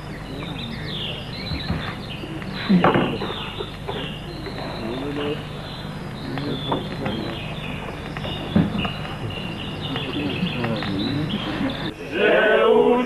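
A man speaks with animation, heard from a distance.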